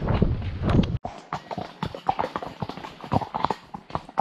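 A horse's hooves clop on a hard paved path.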